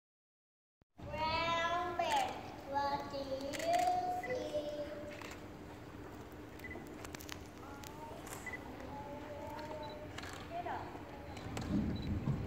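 Young children read aloud together through a microphone.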